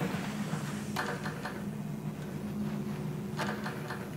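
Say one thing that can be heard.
A metal door handle rattles.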